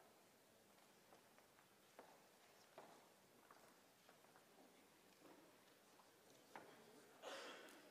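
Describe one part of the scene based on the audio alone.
A man speaks faintly in a large echoing hall.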